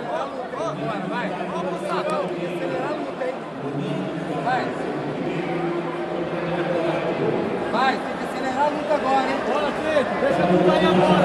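A crowd in a large echoing hall chatters and shouts throughout.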